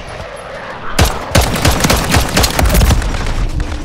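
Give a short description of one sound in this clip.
Rapid gunshots ring out in quick bursts.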